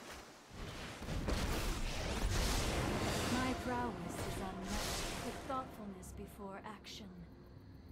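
A magical shimmering whoosh sounds.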